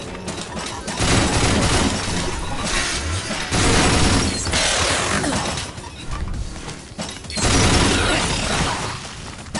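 A heavy weapon fires in loud, roaring bursts.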